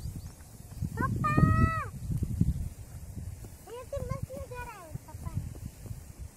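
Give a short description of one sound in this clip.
A young girl calls out nearby.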